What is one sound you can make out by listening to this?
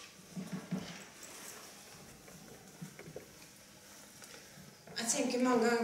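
A woman speaks through a microphone, pausing often.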